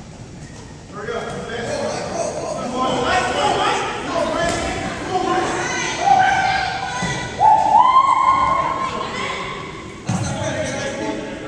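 Young people shout and call out to each other in a large echoing hall.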